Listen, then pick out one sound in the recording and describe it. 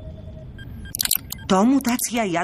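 Small mechanical clicks sound as a knob is turned.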